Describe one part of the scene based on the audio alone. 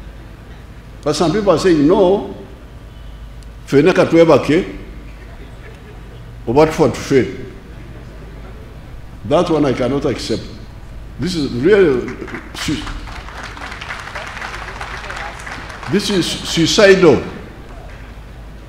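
An elderly man speaks slowly and firmly in short phrases through a microphone and loudspeakers, with pauses between them.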